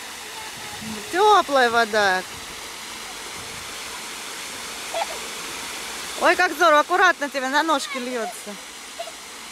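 A young girl squeals in a high voice.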